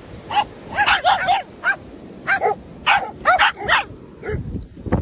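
Small dogs yap and bark excitedly.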